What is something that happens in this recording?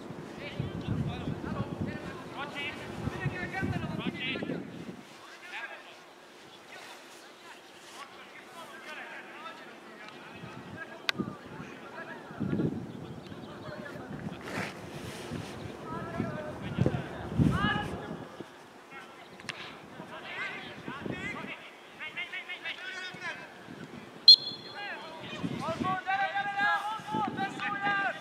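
Young men shout to each other across an open field outdoors, some distance away.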